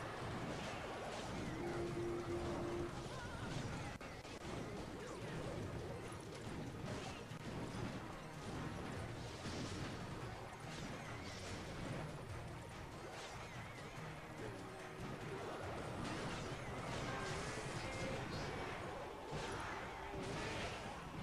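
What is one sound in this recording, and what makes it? Cartoonish battle sound effects clash and pop steadily, with small blasts and hits.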